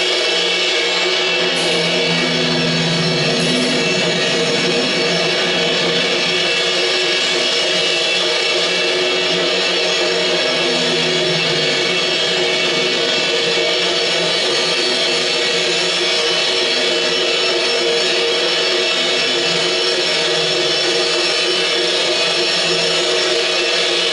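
An electric guitar plays loud, distorted, droning chords through an amplifier.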